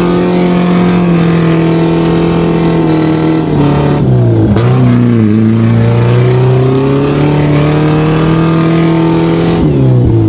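An engine drones loudly, rising and falling in pitch as it revs.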